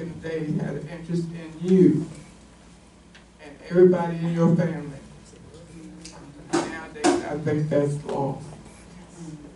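An elderly woman speaks calmly into a microphone in a room with a slight echo.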